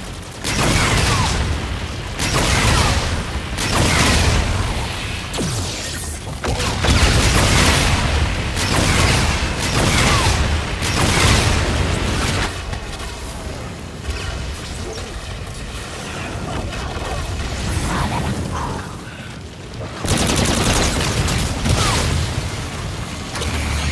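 An energy weapon fires in loud, repeated bursts.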